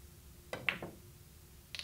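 A cue strikes a billiard ball with a sharp tap.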